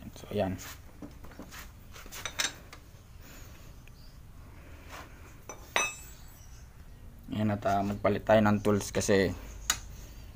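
A metal wrench clinks and taps against metal.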